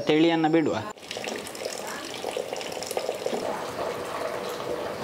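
Water pours from a tap in a thin, steady stream.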